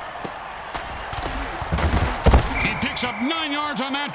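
Football players collide with heavy thuds.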